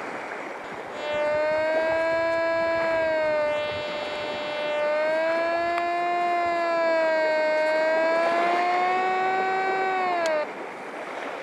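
A metal detector hums a steady, slightly wavering tone.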